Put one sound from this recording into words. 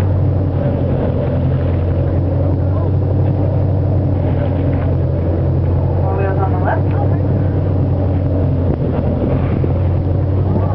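Choppy sea water sloshes and splashes nearby.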